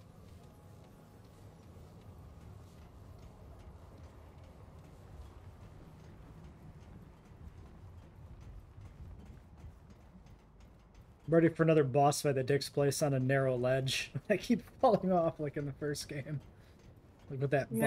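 Footsteps thud on a metal walkway.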